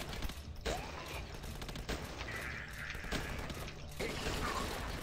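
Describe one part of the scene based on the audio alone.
Gunshots crack at intervals.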